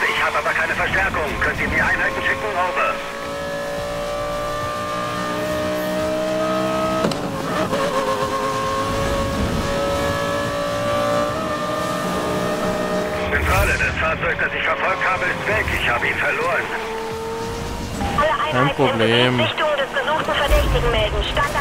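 A sports car engine roars and revs at high speed.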